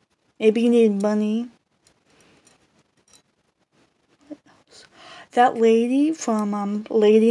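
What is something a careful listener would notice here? Metal rings clink softly together.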